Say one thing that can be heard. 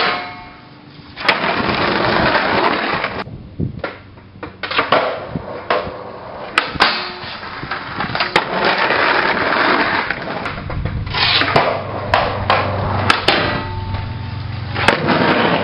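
A skateboard grinds along a metal rail.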